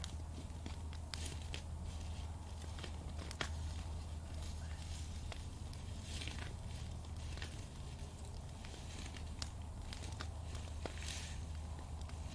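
A small fire crackles and pops.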